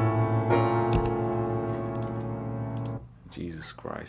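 A synthesizer chord rings out and stops.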